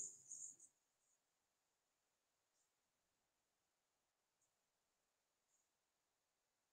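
Chalk taps and scrapes faintly on a blackboard.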